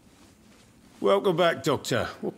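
A man speaks calmly and warmly, close by.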